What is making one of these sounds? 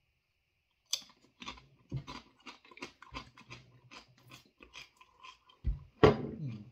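A man crunches a crisp chip between his teeth.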